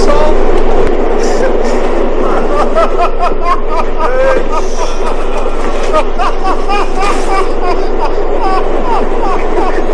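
An older man talks and laughs with animation.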